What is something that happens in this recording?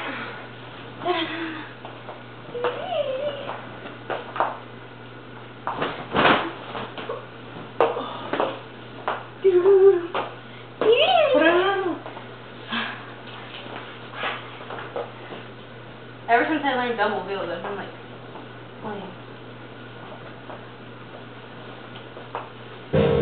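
A blanket swishes as it is flapped about.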